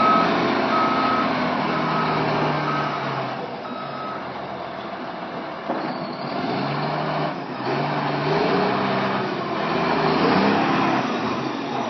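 A large grader blade scrapes over gravel.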